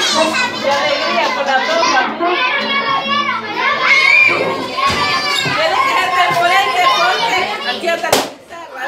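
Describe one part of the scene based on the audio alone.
A group of men, women and children sing together in a room.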